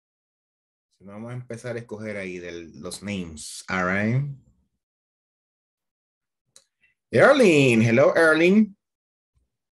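A man speaks clearly over an online call, in two short bursts.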